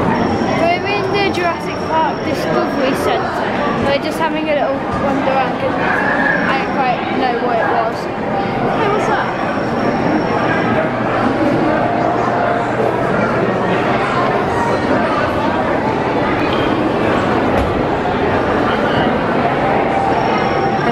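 A crowd chatters all around in a large echoing hall.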